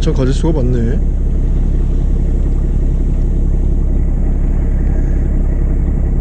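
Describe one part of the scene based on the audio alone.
A boat engine rumbles steadily and low.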